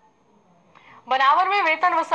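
A woman reads out the news through a microphone, clearly and evenly.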